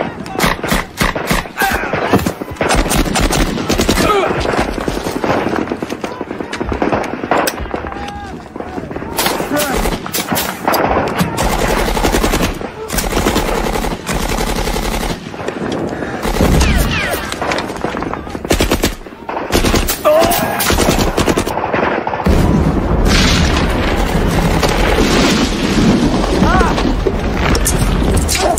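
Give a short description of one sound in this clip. Gunshots crack and echo outdoors.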